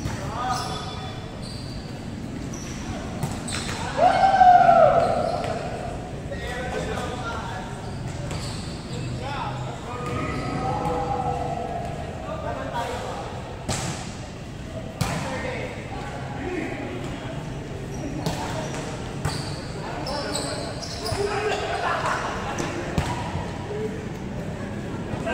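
Young men call out and shout during play.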